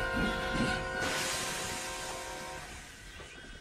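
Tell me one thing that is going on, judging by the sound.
Steam hisses loudly in a burst.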